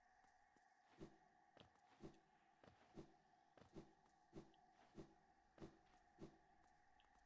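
Small quick footsteps patter along at a steady pace.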